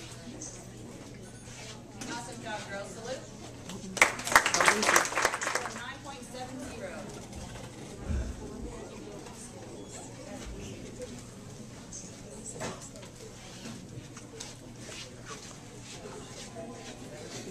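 Voices murmur in a crowd nearby.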